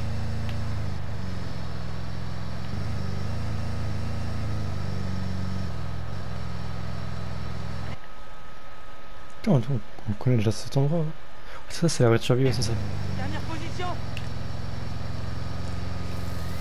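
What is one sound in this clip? The engine of an armoured military truck drones as it drives along a road.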